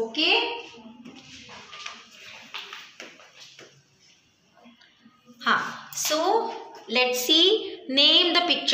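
A woman speaks clearly and slowly, close by, as if teaching.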